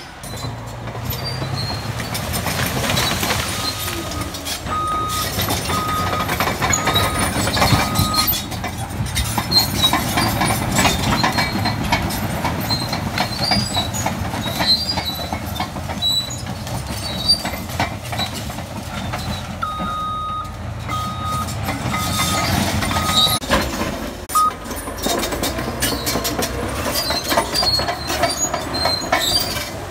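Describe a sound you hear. Bulldozer tracks clank and squeal as they roll over dirt.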